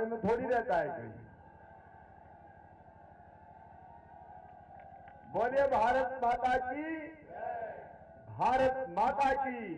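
A man speaks loudly and with animation through a microphone and loudspeakers, echoing outdoors.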